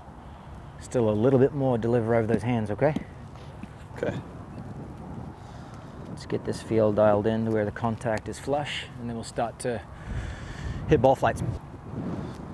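A man talks calmly outdoors, close by.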